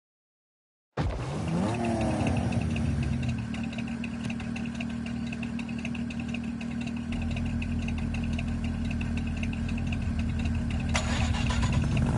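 Car engines idle with a steady low rumble.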